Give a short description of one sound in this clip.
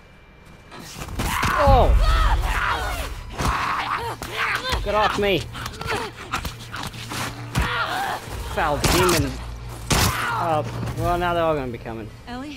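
A man snarls and shrieks while attacking.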